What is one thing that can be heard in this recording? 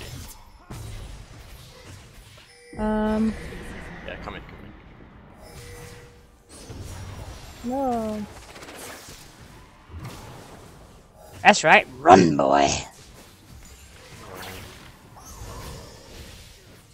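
Game spell effects whoosh and blast throughout.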